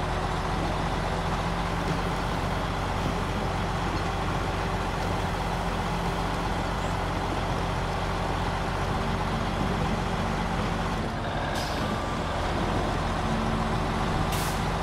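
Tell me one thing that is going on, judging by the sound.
A heavy truck engine rumbles steadily as the truck drives along a rough road.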